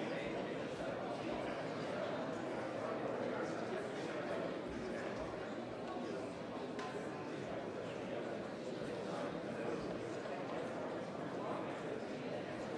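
Many men and women chatter and murmur in a large echoing hall.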